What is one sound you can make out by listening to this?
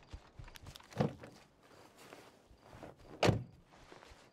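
A car door shuts with a thud.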